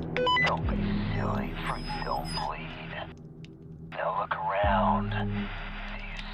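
A young woman talks close to a microphone.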